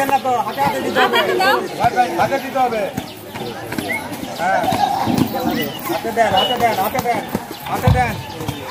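A crowd of women and men chatter and call out outdoors.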